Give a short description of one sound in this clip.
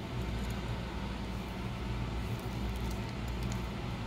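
Fingers handle a small part with faint clicks and taps.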